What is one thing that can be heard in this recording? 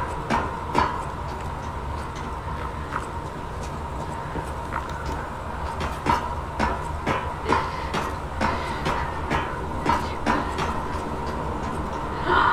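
Footsteps clank on metal scaffolding.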